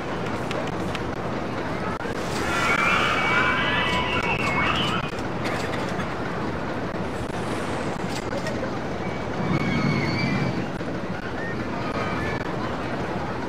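Roller coaster trains rattle and roar along their tracks.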